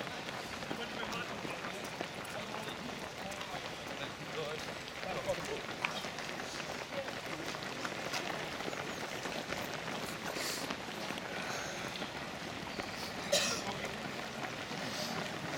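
Many runners' footsteps patter steadily on pavement.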